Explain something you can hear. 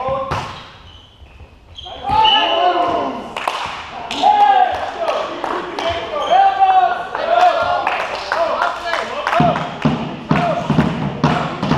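A volleyball is struck with dull smacks.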